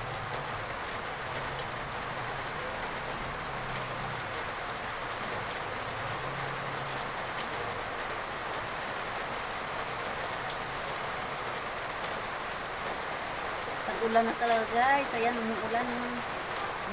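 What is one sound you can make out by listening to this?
Greens sizzle in a hot wok.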